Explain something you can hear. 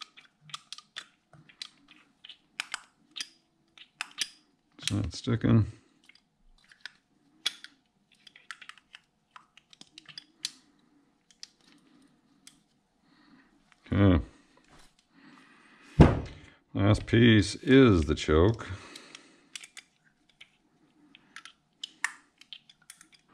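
Small metal parts click and rattle as they are turned in the hands.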